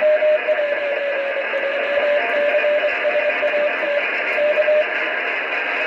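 A Morse code tone beeps in short and long bursts over a radio.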